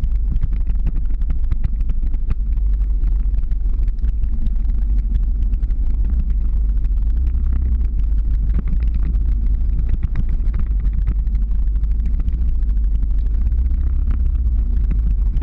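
Strong wind buffets and roars close by.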